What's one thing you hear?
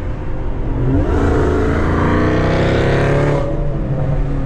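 A car engine revs up loudly and its pitch rises as the car accelerates.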